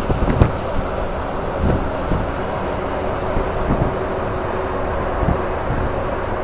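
A bus engine rumbles steadily close by as the bus drives past.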